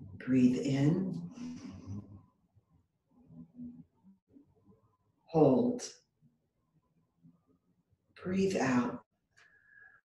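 An older woman speaks calmly and slowly, close by, with long pauses.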